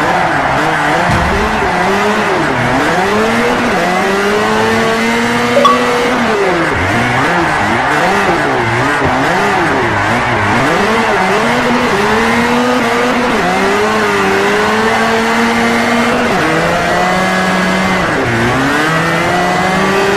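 A four-cylinder sports car engine revs up and down as it drifts.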